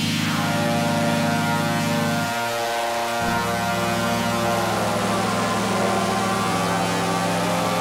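A synthesizer plays sustained electronic chords.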